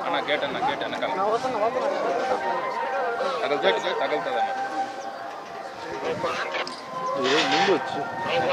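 A crowd of men talk and call out around the microphone outdoors.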